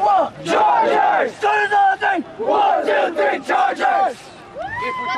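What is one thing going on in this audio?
A group of young men chant loudly together in a huddle.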